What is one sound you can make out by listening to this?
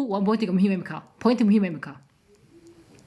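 A woman speaks calmly and close up.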